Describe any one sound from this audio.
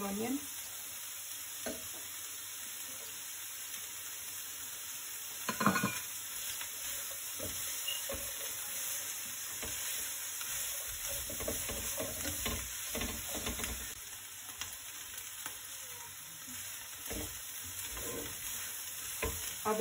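A spatula scrapes and clinks against a metal pan while stirring food.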